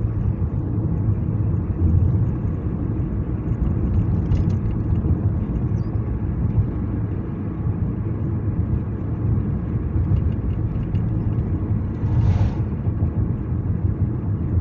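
Tyres roll on pavement with a low rumble.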